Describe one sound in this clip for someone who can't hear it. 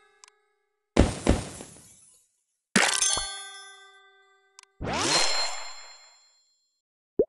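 A whooshing burst sounds with a rising sparkle.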